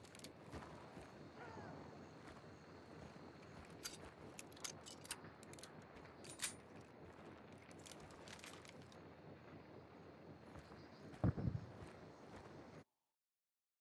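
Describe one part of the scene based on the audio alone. Footsteps crunch on gravel and dirt.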